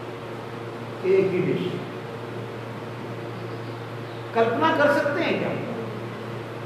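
An elderly man speaks briefly and calmly.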